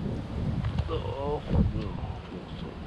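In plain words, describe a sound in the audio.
A fish thrashes and splashes at the water's surface.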